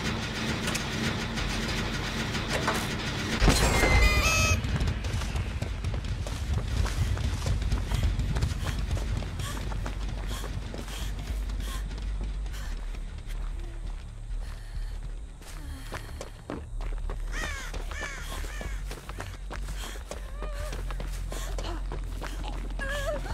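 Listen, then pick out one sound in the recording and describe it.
Footsteps run quickly through dry grass and leaves.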